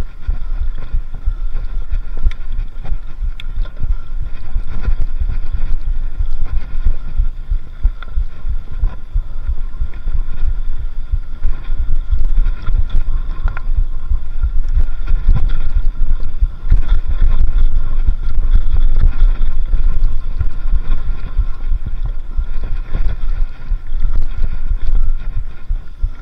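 Wind rushes loudly over the microphone.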